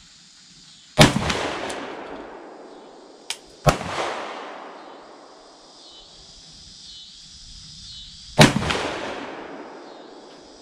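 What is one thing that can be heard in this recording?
A rifle fires loud, sharp shots close by that echo outdoors.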